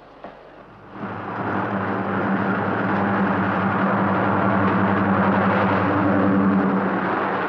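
A diesel locomotive rumbles loudly as it pulls a train past.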